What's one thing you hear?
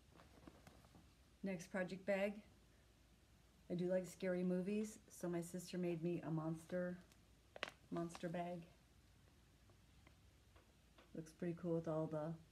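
Fabric rustles as a woman handles a cloth bag.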